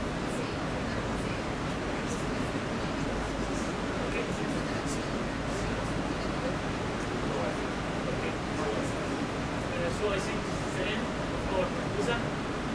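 A young woman speaks into a microphone, amplified in a large echoing hall.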